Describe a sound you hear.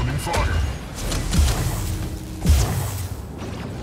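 Gunfire and explosions boom in quick bursts.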